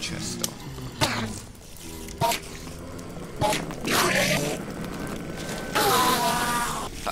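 A creature groans and warbles eerily.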